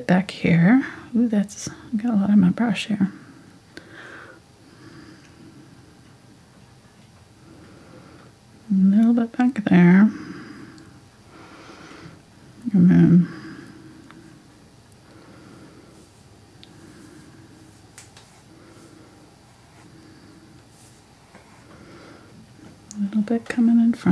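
A paintbrush dabs and strokes softly on canvas.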